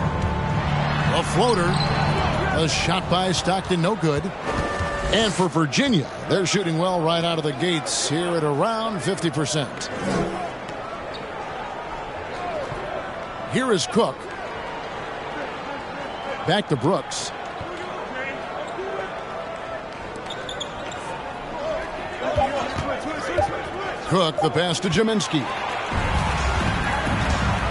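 A crowd cheers and murmurs steadily in a large arena.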